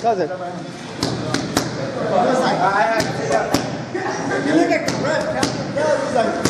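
Boxing gloves smack sharply against punch mitts.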